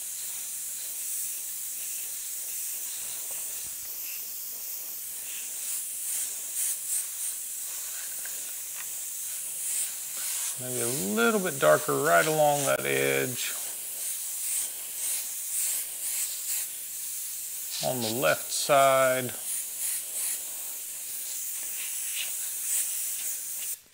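An airbrush hisses in short bursts of spray.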